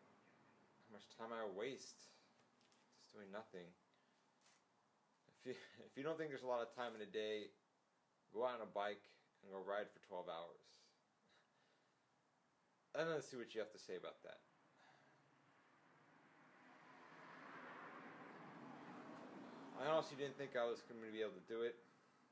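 A young man speaks calmly and close by, in short bursts with pauses.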